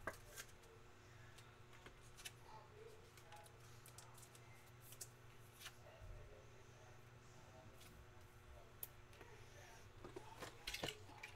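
Hands shuffle and tap card boxes on a table.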